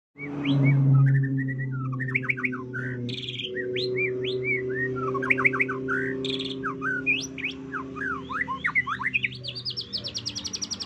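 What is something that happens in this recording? A songbird sings a rich, varied song of whistles, chirps and fast trills up close.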